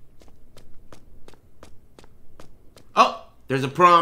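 Footsteps splash on a wet concrete floor at a steady pace.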